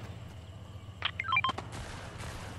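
A short rising chime plays as an item is picked up.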